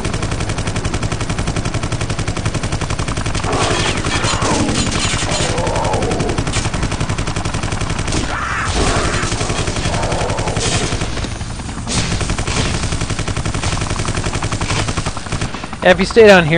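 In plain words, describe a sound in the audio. An automatic gun fires in rapid, steady bursts.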